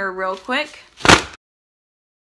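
A folding fan snaps open.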